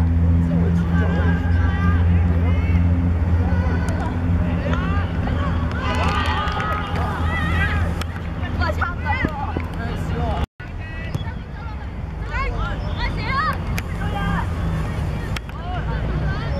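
Young boys shout across an open field.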